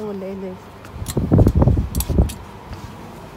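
Clothes on hangers rustle as they are brushed aside.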